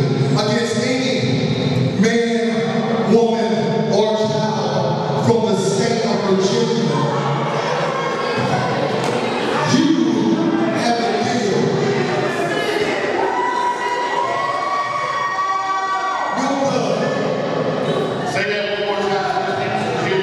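A man speaks loudly into a microphone, heard through loudspeakers in a large echoing hall.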